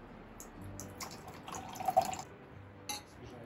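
A drink pours and splashes into a glass.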